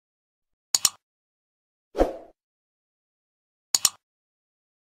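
A mouse button clicks twice in quick succession.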